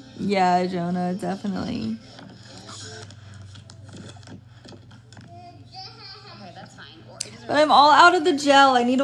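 A young woman speaks animatedly and close to a phone microphone.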